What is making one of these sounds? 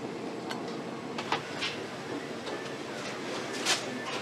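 A wooden ladle scrapes and knocks against a metal pot.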